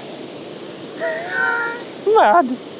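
A man laughs cheerfully.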